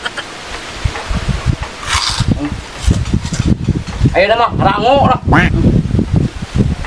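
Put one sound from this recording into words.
A man chews food noisily close by.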